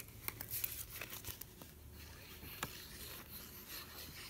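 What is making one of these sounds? A plastic glue bottle rattles in a hand.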